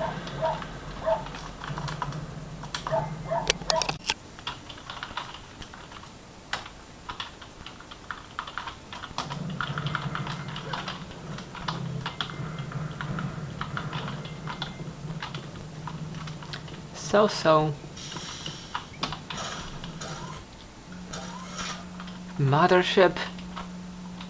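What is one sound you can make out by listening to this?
Gunfire and game sound effects play from desktop speakers.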